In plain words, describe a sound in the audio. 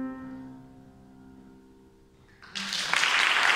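A violin plays a melody in an echoing hall.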